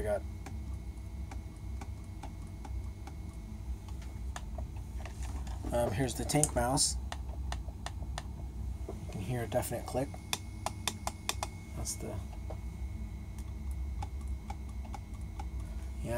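A computer mouse button clicks repeatedly.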